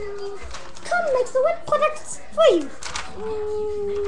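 A sheet of paper rustles.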